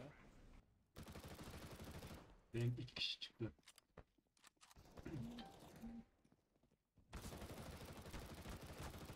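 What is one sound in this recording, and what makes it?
A submachine gun fires rapid bursts close by.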